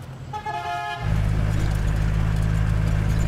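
A jeep engine rumbles as the jeep drives up.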